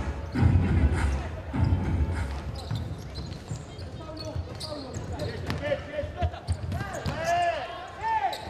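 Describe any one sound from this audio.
A crowd cheers and chants in a large echoing hall.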